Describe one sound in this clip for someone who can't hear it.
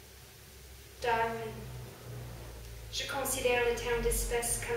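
A young woman reads aloud calmly into a microphone.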